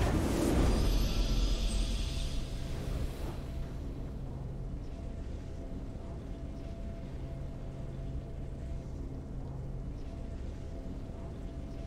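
Triumphant game music plays a steady fanfare.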